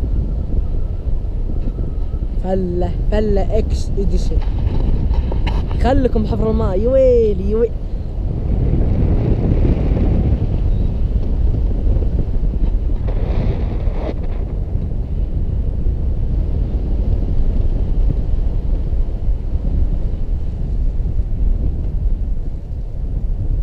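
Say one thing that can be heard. Wind roars loudly against the microphone outdoors.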